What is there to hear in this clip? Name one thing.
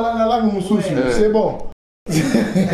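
A man talks on a phone with animation, close by.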